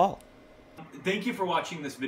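A man speaks with animation, close to the microphone.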